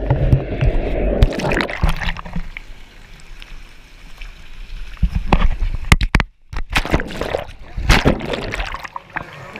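Water splashes and sloshes near the microphone.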